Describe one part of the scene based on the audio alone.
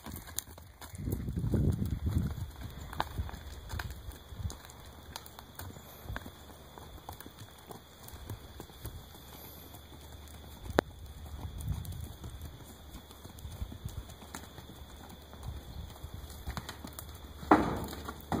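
Horses' hooves thud and scuff on hard dirt ground.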